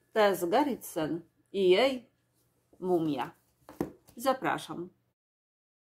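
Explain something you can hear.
A middle-aged woman talks warmly and with animation into a nearby microphone.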